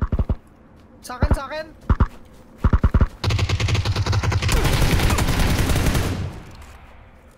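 A rifle fires in short bursts, then in a long rapid burst.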